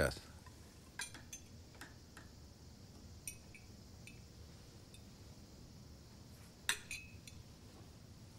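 Cutlery clinks softly against plates.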